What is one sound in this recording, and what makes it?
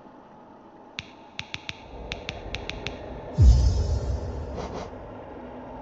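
Soft menu clicks tick quickly.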